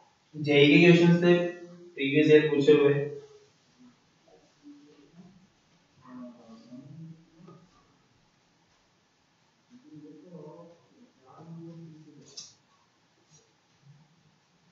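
A young man speaks, lecturing, loudly at first and then more quietly with pauses.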